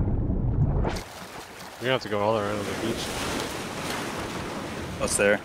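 Water splashes and laps against rock.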